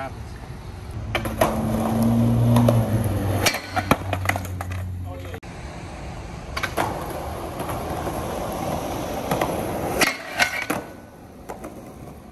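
Skateboard wheels roll and clatter on concrete.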